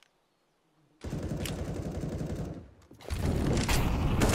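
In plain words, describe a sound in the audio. A grenade pin clicks out.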